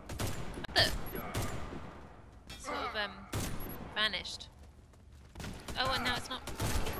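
Sniper rifle shots crack loudly, one at a time.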